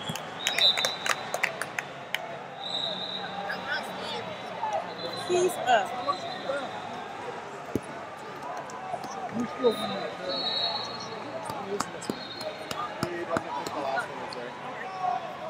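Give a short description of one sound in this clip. A crowd murmurs and chatters throughout a large echoing arena.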